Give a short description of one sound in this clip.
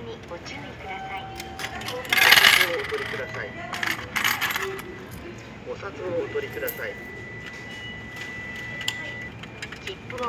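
A ticket machine beeps.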